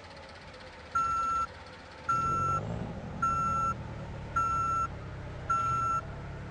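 A bus air horn blasts in short repeated bursts.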